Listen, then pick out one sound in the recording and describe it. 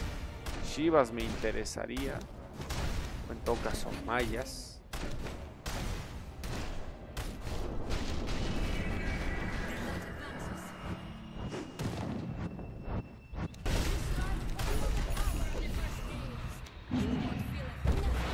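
Game battle sound effects crackle and boom throughout.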